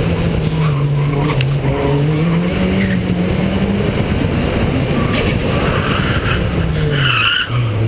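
Wind rushes past the car.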